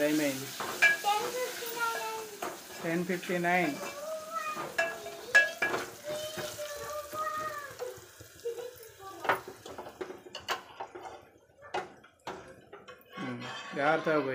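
A metal spoon clinks and scrapes against a steel pot.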